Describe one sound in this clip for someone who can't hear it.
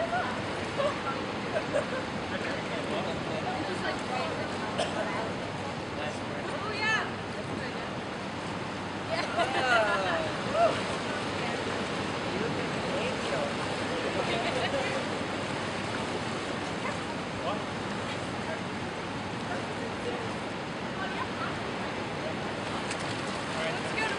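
Water splashes and swirls as a paddle moves through it.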